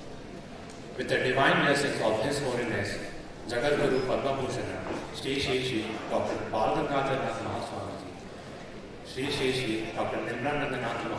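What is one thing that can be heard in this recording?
A young man speaks calmly into a microphone over loudspeakers in a large echoing hall.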